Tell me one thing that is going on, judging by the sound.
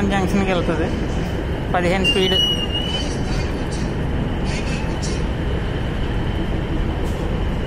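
A diesel-electric multiple unit train rolls along the track, its wheels and engine rumbling.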